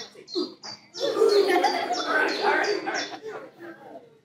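A group of children call out loudly together.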